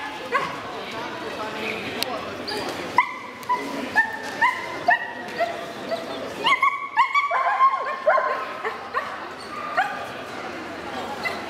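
A dog yelps and barks repeatedly in an echoing hall.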